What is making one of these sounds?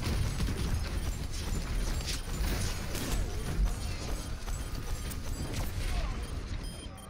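Gunfire crackles rapidly in a loud fight.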